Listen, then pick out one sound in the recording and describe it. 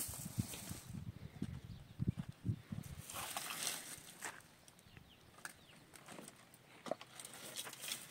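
Footsteps crunch on dry, gravelly ground.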